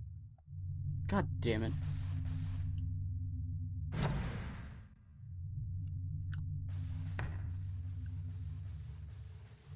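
Footsteps tap slowly on a wooden floor.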